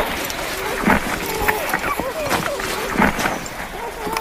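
Puppies whimper and squeal softly up close.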